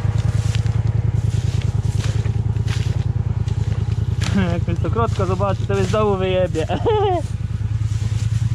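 A string trimmer line whips through wet grass.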